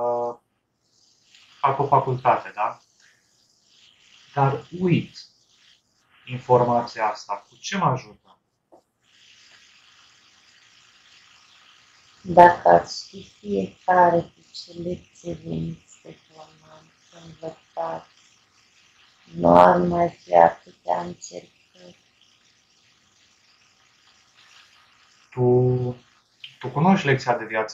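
A young man talks calmly into a headset microphone, heard over an online call.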